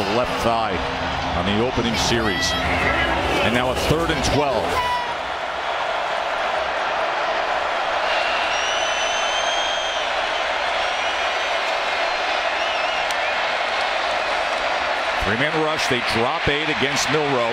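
A large stadium crowd roars and cheers outdoors.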